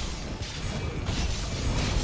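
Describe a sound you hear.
A blade slashes with a sharp swoosh.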